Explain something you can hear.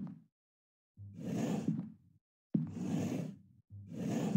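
A drawer slides open and shut.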